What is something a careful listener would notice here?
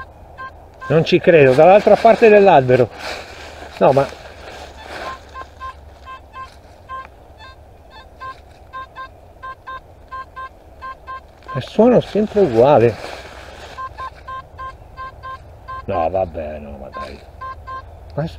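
A metal detector gives a loud warbling tone that rises and falls.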